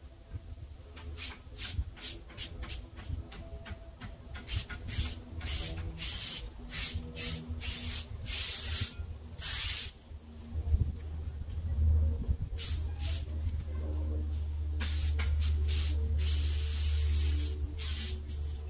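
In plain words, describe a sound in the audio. A string trimmer whirs in bursts, cutting grass.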